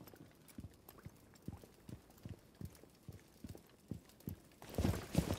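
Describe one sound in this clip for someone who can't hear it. Footsteps thud on a floor at a walking pace.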